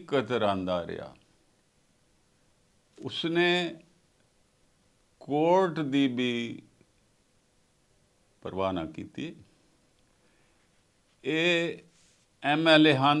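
An elderly man speaks emphatically into a close microphone, in short bursts with pauses.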